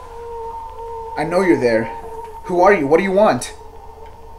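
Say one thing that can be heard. A young man speaks quietly into a telephone.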